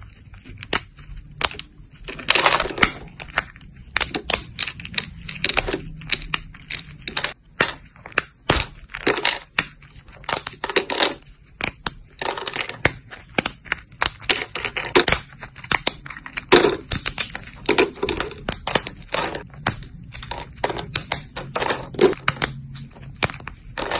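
Fingers snap thin, dry soap plates, which crack and crackle sharply.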